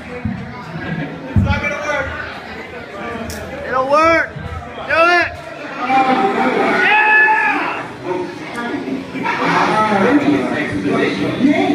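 Young adults talk and shout loudly in a crowd.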